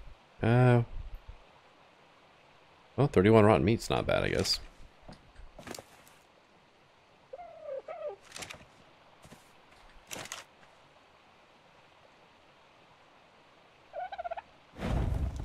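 Short interface clicks sound as items are moved between menus.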